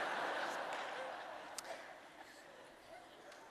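An audience laughs in a large hall and the laughter fades.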